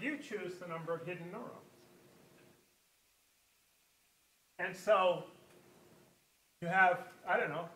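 An elderly man lectures through a microphone, speaking in bursts with pauses.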